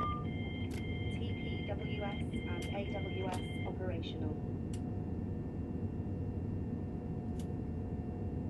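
Switches click now and then.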